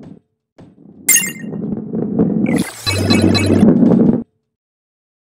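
A bright chime rings as a coin is collected.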